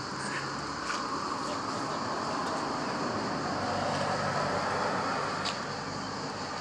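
Footsteps walk across pavement outdoors.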